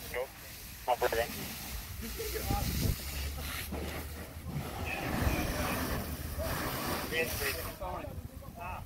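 A fire hose sprays water onto burning debris.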